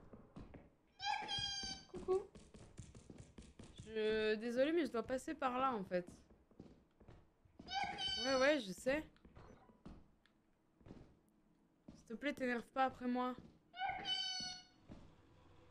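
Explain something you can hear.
A boy speaks with animation, close to a microphone.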